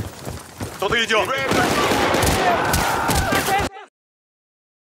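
A rifle fires several loud shots close by.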